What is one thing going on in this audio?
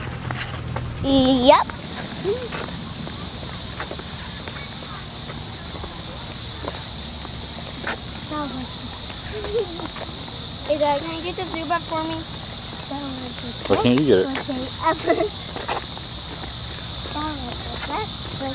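A young boy talks nearby, outdoors.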